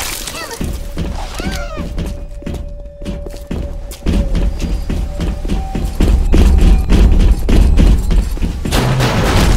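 Footsteps thud steadily on a hard floor.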